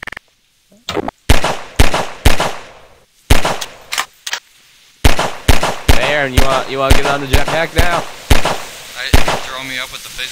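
A pistol fires shot after shot in quick bursts.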